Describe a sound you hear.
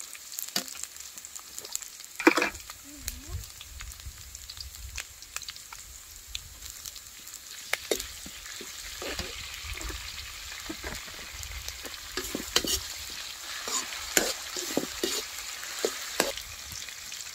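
A metal ladle scrapes and clinks against a steel wok.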